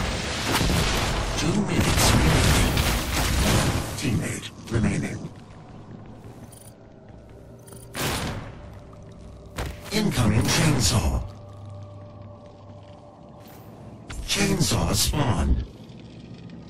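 Video game weapons fire in loud bursts.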